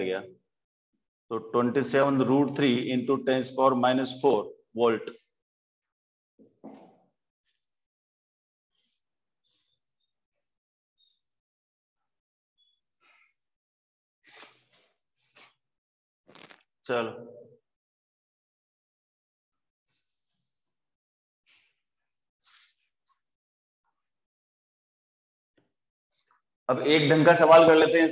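A man speaks calmly and clearly close by.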